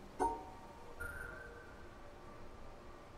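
A soft electronic tone hums steadily.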